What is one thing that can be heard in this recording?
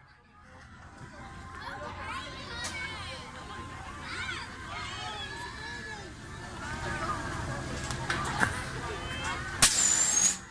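A fairground ride's machinery whirs as the ride rises.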